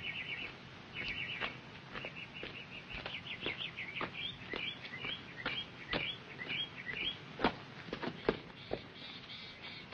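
Footsteps crunch along a dirt path.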